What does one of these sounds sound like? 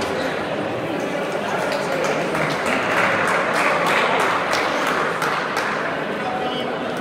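A crowd applauds and cheers after a point.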